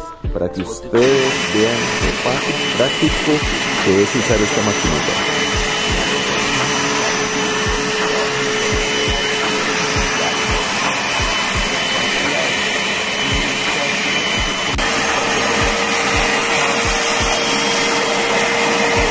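A handheld upholstery cleaner whirs and sucks across fabric.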